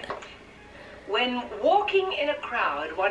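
A woman speaks through a television's small loudspeaker.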